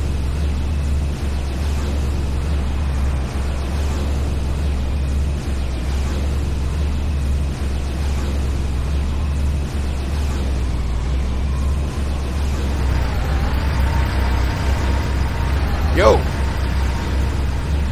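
An electric shield crackles and hums steadily.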